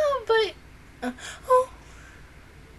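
A young woman speaks briefly close to a microphone.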